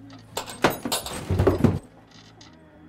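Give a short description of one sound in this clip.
A hanging ornament knocks and rattles as a hand strikes it.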